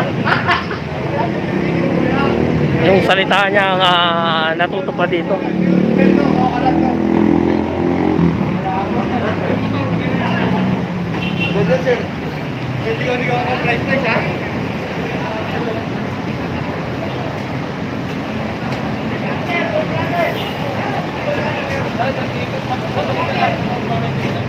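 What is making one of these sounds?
Traffic hums and motorcycles pass on a busy street outdoors.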